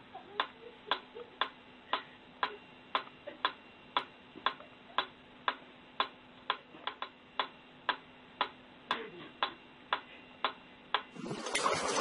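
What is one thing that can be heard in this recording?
A metronome ticks steadily.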